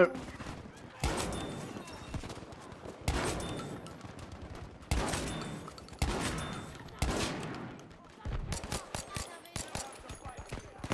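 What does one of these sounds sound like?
Rifle shots ring out one at a time.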